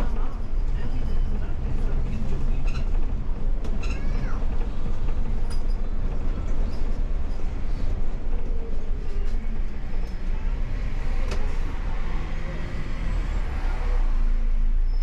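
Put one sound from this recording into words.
A bus engine rumbles and whines as the bus drives along a city street.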